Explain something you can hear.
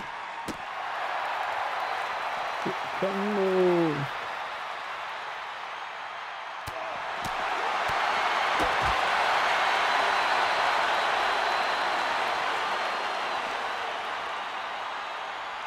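A crowd cheers and roars loudly throughout, swelling partway through.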